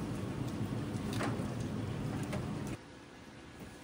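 Meat sizzles on a hot grill.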